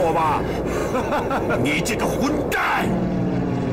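A man grunts and strains up close.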